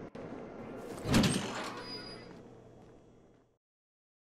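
A metal elevator door bangs with a loud crash that rings and fades.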